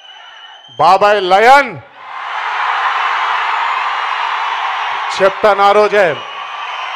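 A young man shouts with excitement into a microphone over loudspeakers.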